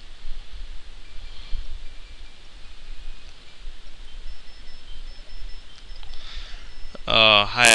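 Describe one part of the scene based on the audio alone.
Video game title music from a 16-bit console game plays faintly.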